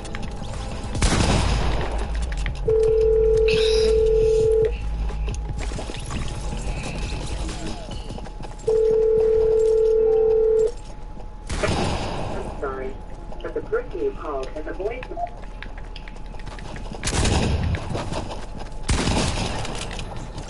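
Loud game gunshots and blasts ring out now and then.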